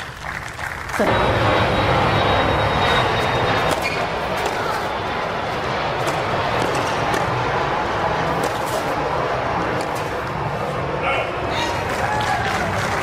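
A large crowd cheers and applauds loudly outdoors.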